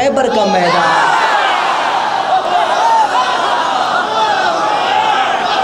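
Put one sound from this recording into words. A crowd of men chant along loudly.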